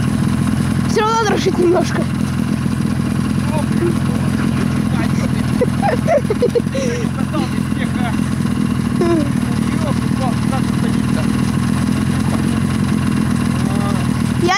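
A snowmobile engine idles with a steady low rumble.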